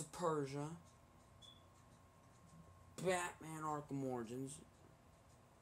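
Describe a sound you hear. A young man speaks close up, in short bursts of expressive, drawn-out words.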